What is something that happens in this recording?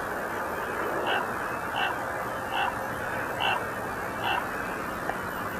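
A large black bird caws loudly several times, close by.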